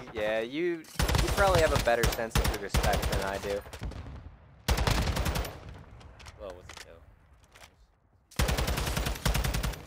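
A rifle fires rapid bursts of gunfire at close range.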